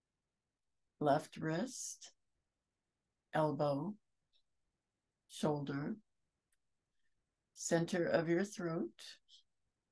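A middle-aged woman speaks calmly and gently into a microphone, pausing between phrases.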